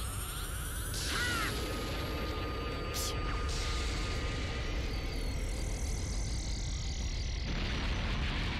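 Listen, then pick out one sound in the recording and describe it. An energy beam roars and crackles loudly.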